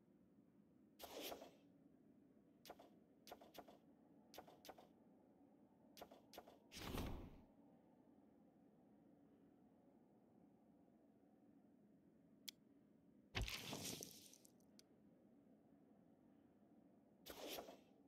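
Paper cards swish and slide into place.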